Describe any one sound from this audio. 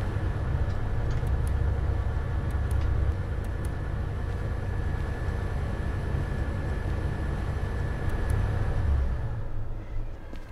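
A locomotive engine rumbles steadily and deeply.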